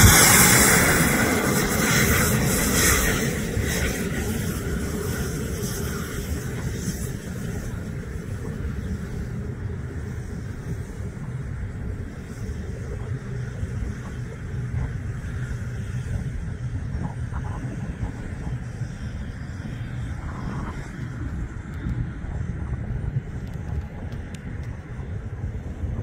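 A model jet's engines hiss and whine as it taxis away and fades into the distance.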